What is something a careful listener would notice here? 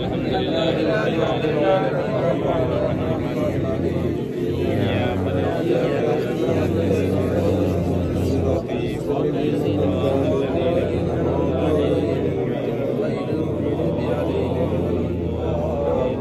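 A crowd of men murmurs and chants together outdoors.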